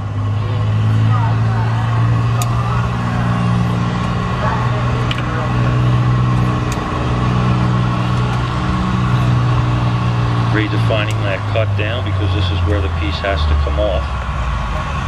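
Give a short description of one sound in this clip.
A furnace burner roars steadily.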